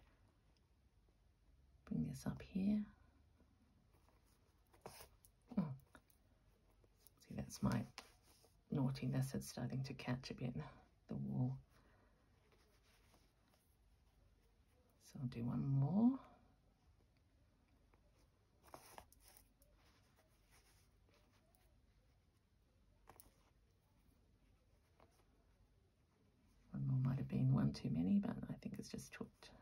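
Thread rustles softly as it is pulled through cloth.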